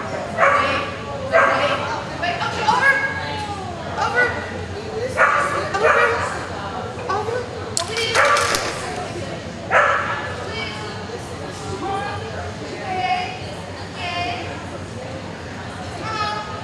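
A woman calls out commands to a dog.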